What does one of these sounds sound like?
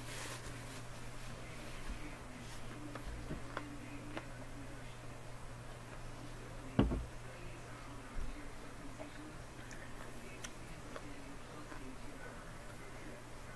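A woman chews and crunches raw broccoli.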